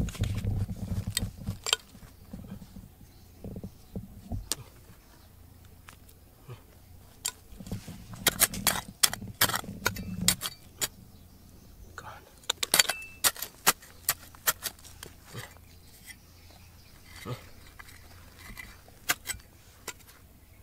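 Fingers scratch and rake through loose gravel.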